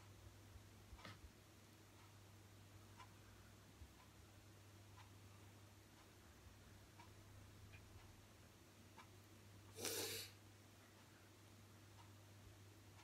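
Fingers tap lightly on a touchscreen.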